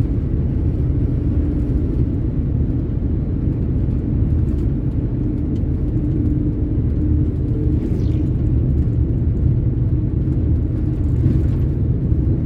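Wind roars steadily against a moving vehicle.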